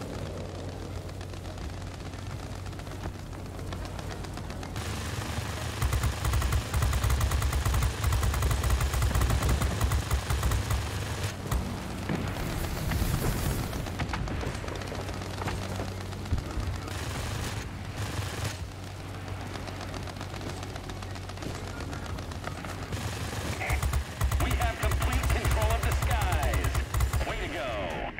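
A plane engine drones steadily.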